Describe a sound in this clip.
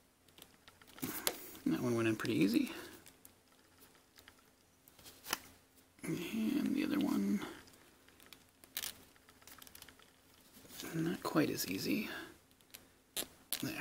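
Small plastic parts click and scrape as a toy figure is handled up close.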